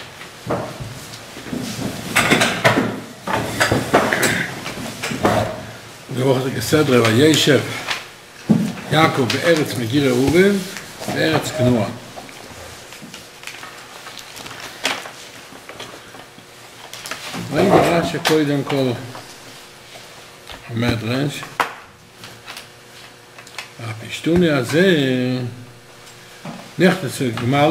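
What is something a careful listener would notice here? An elderly man speaks calmly close by, in bursts with pauses.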